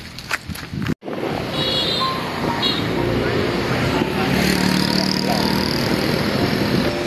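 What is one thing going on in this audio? A motorbike engine hums while riding along a road.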